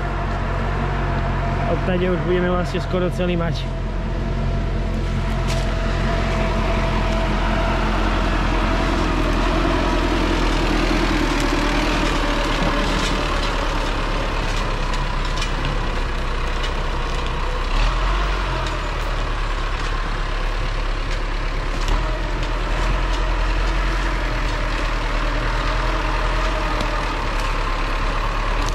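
A diesel engine of a forestry tractor rumbles steadily nearby.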